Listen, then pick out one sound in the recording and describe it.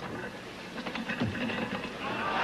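Barbell plates clank as a weightlifter pulls the bar up.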